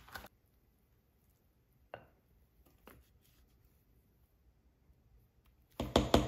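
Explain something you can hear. Thick batter plops softly into a pan.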